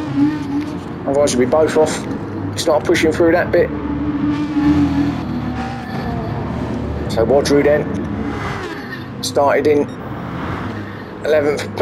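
Racing car engines roar steadily at high speed.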